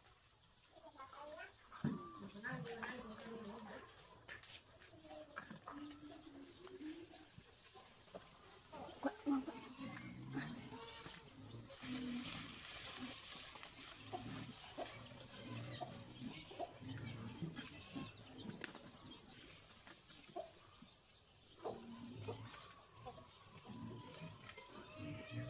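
Fruit stems snap as fruit is picked by hand.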